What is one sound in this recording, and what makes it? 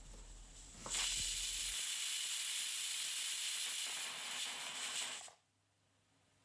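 A pressure cooker whistles loudly, hissing out steam.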